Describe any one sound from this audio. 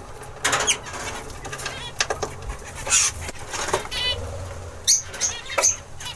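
A small bird chirps close by.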